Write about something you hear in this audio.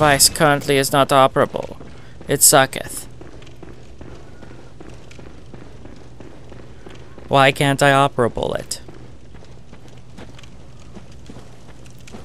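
Quick footsteps patter on wooden boards and stone.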